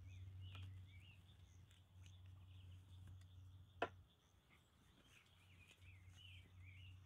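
A sleeping pad rustles and crinkles as it is handled.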